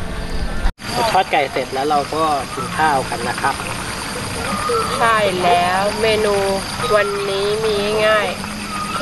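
A young man talks casually.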